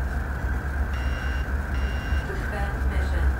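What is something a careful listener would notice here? A warning alarm beeps in short bursts.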